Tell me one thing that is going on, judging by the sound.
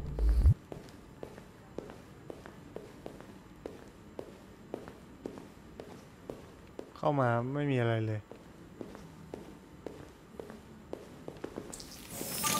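Footsteps tap steadily on a hard floor.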